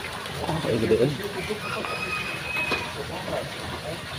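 A hooked fish thrashes and splashes in the water.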